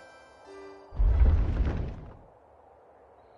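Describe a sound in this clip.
A heavy stone floor rumbles as it crumbles and falls away.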